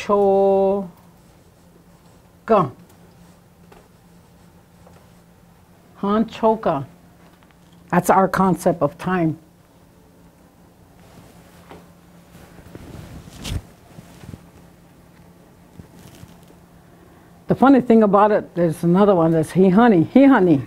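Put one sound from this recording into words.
An elderly woman speaks calmly, pausing between phrases.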